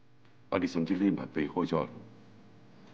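A middle-aged man speaks seriously and close by.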